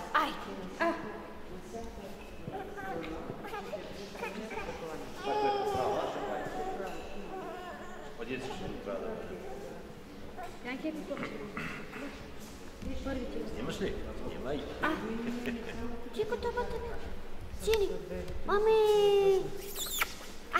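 Several women talk softly nearby in a large echoing hall.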